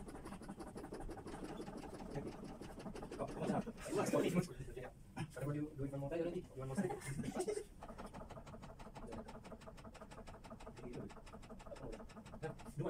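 A training dummy clicks rhythmically under chest compressions.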